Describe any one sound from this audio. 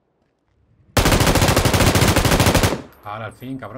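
A machine gun fires a long rapid burst.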